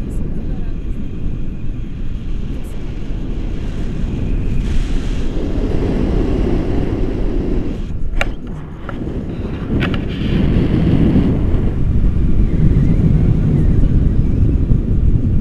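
Strong wind roars and buffets against a microphone outdoors.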